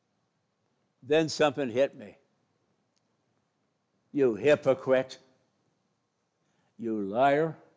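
An elderly man speaks slowly into a microphone, in short phrases with pauses.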